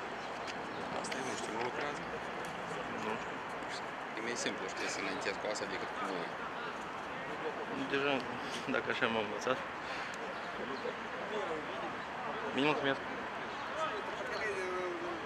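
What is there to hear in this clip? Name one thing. Young men call out to each other from a distance outdoors.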